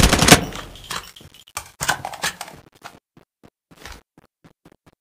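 A rifle is reloaded with metallic clicks.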